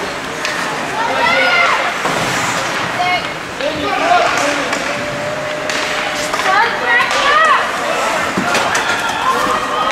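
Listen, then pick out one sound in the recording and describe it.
Spectators shout and cheer nearby in an echoing rink.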